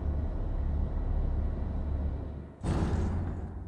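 A hanging crate creaks on its ropes.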